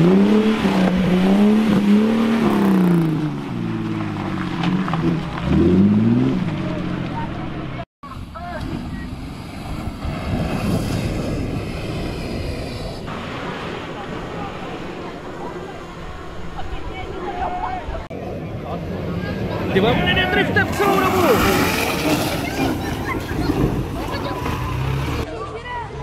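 An off-road vehicle's engine revs and roars.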